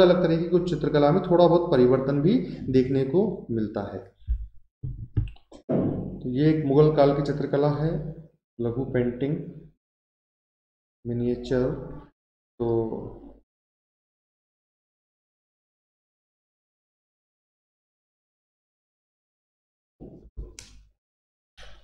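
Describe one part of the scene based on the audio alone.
A man speaks calmly and explains into a close microphone.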